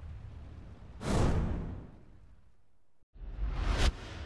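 A bright flash sweeps by with a whoosh.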